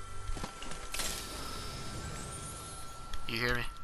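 A treasure chest opens with a bright, shimmering chime.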